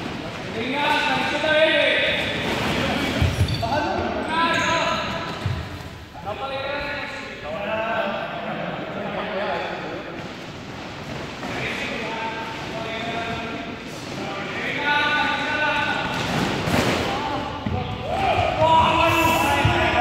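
A group of young people sings together in a large echoing hall.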